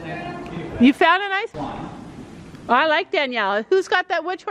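A young woman speaks excitedly nearby.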